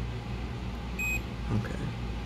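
A multimeter gives a short, high beep.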